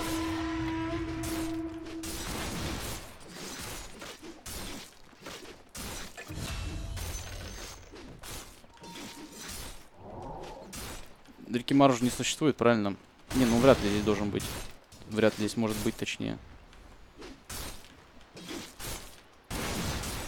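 Video game combat sounds clash and crackle.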